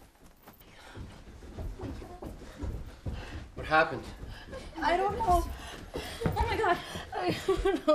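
A young woman talks urgently close by.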